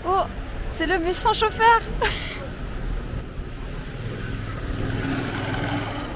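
A small electric bus rolls past.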